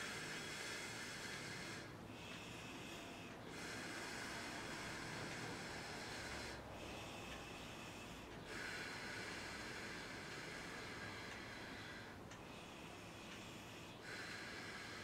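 A man plays a small mouth instrument in long steady drones, pausing now and then for breath.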